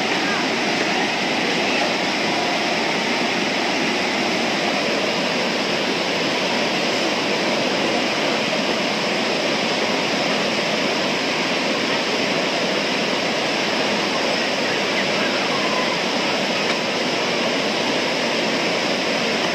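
A river rushes loudly over rocks nearby.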